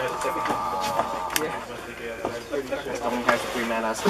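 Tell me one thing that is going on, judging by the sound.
Cards are shuffled in a player's hands.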